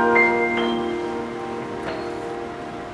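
A saxophone holds a last note and stops.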